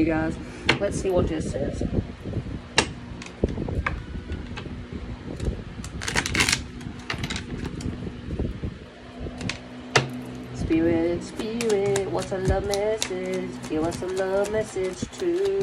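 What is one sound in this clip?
Playing cards riffle and snap as they are shuffled close by.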